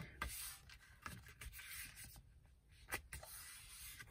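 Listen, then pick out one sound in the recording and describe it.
A sheet of paper is creased with a soft rubbing.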